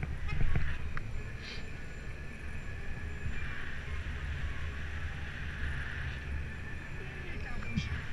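Wind rushes past a microphone on a moving bicycle.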